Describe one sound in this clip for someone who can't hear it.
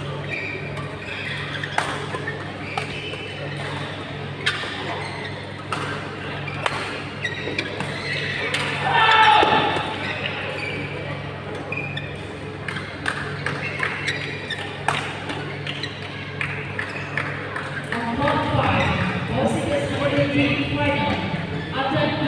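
A crowd of onlookers chatters in the background.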